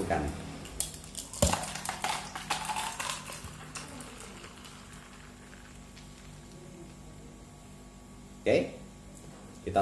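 Milk pours into a cup with a soft gurgle.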